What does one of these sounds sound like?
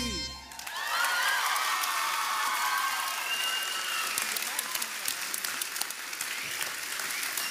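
A young woman sings loudly in a large echoing hall.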